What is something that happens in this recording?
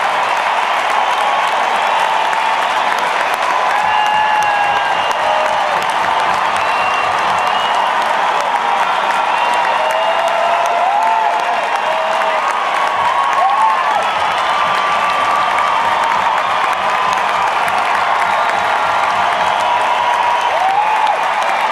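People in a crowd whistle shrilly.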